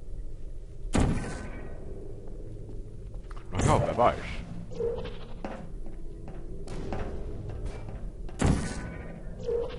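A sci-fi energy gun fires with a sharp whooshing burst.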